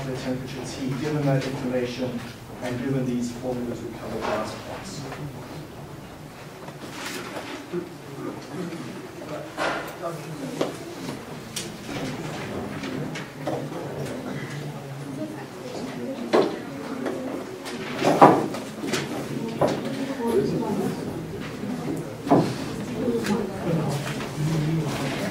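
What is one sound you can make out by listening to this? A man lectures calmly and clearly in an echoing room.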